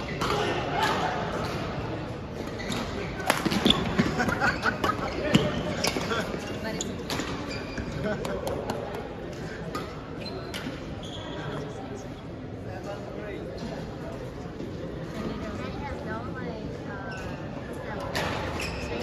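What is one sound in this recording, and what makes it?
Voices of young men chatter in a large echoing hall.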